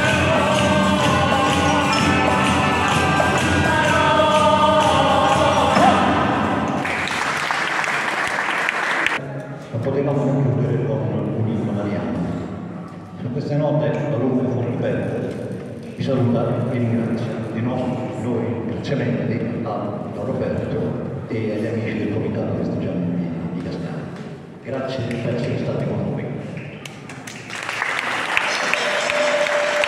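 A group of women and men sing together loudly.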